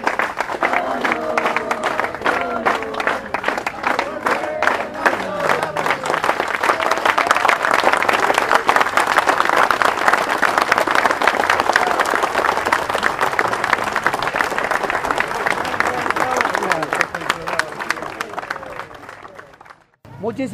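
A crowd of men sings and chants together outdoors.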